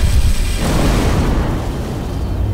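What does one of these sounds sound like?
A spaceship explodes with a loud blast.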